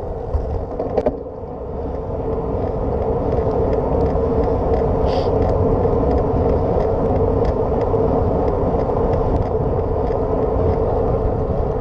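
Tyres crunch and rattle over a gravel path.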